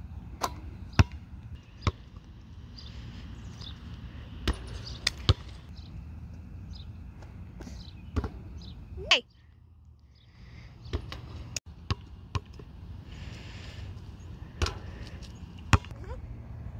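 A basketball bounces sharply on an outdoor court.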